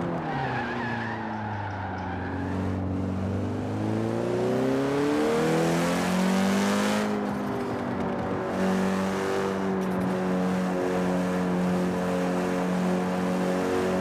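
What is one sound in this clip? Tyres screech and hiss as a car drifts.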